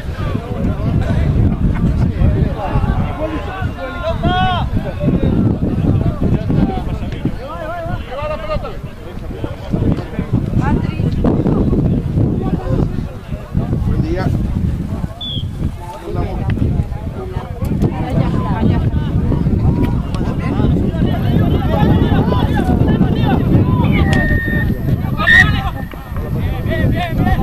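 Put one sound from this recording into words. A small crowd of spectators shouts and calls out from the sidelines.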